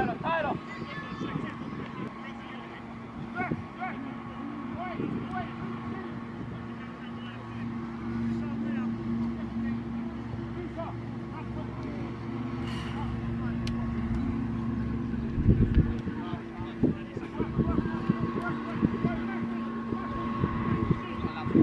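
Young players shout to each other across an outdoor pitch.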